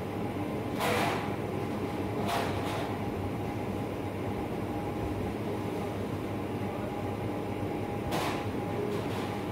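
Metal trays clatter and rattle now and then.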